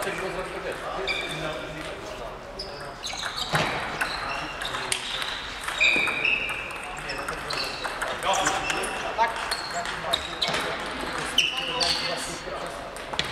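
Sports shoes squeak on the hall floor.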